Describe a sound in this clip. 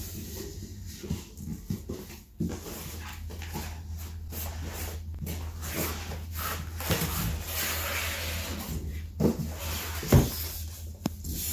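Cardboard rustles and scrapes as a box is opened by hand.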